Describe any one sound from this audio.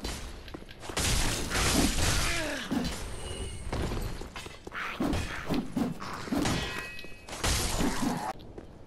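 Metal blades clash and strike in a fight.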